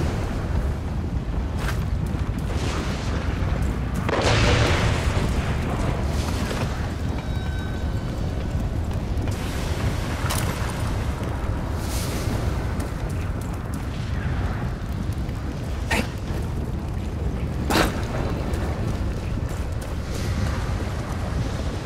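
Footsteps tread steadily over rough ground.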